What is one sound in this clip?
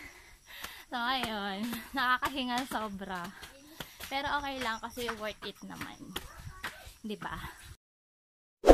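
A young woman talks cheerfully and closely.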